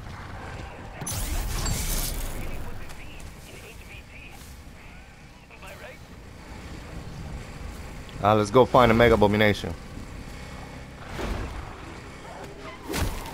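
A motorbike engine rumbles and revs.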